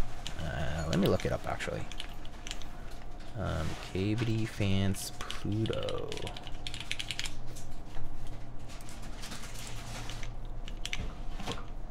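Keyboard keys clack rapidly under typing fingers.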